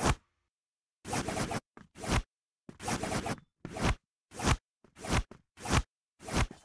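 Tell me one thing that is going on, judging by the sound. A knife swishes through the air in short swipes.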